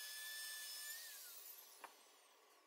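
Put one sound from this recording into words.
A wood router winds down with a falling whine.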